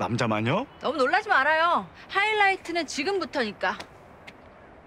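A young woman speaks loudly and with animation.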